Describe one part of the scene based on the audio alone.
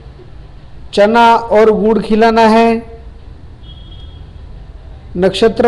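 A middle-aged man speaks calmly and close by, heard through a small microphone.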